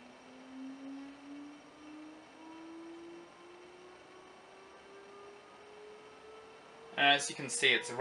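An electric motor whines softly, its pitch rising slowly and steadily.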